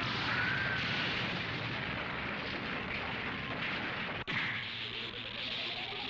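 Stone cracks and rumbles loudly.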